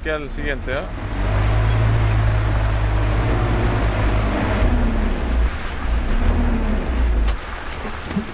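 A truck engine rumbles low and steady as it drives.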